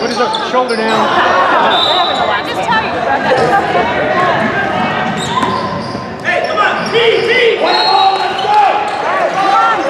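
Young players and spectators shout and chatter in an echoing gym.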